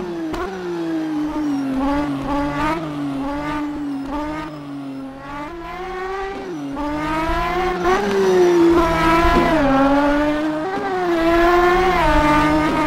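An air-cooled flat-six sports car engine accelerates and shifts through the gears.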